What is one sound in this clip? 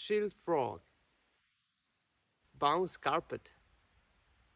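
A young man speaks close to a microphone in short, lively words.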